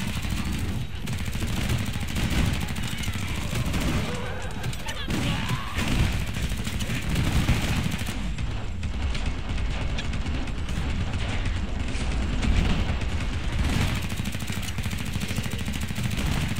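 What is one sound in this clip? A shotgun fires again and again with heavy booms.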